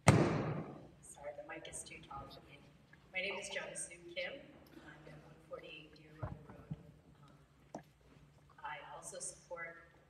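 A crowd of adults murmurs and chats quietly in a large hall.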